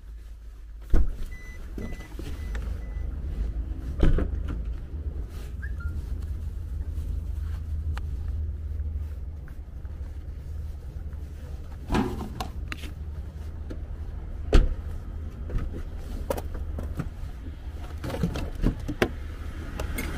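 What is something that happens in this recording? Objects knock and thud as they are handled inside a car.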